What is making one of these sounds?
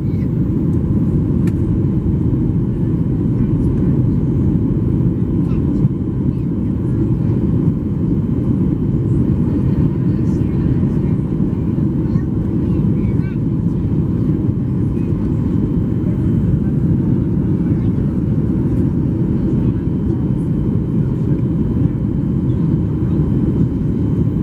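A jet airliner's cabin roars with a steady, deep engine and wind rumble.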